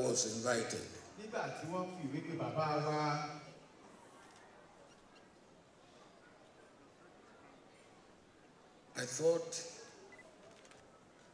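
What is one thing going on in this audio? An elderly man speaks slowly and with emphasis through a microphone in a large echoing hall.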